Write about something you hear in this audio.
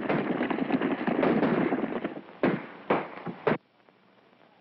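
Horses gallop over hard ground.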